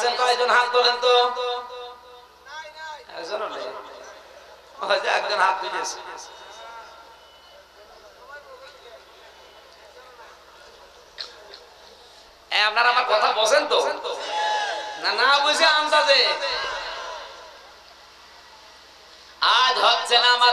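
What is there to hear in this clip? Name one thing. A man chants and preaches with feeling through a microphone and loudspeakers.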